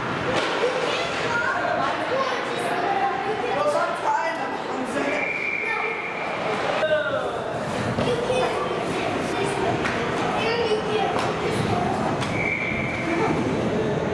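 People shout and call out in a large echoing rink.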